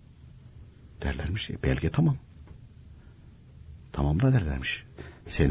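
An elderly man speaks calmly into a microphone, heard as if over the radio.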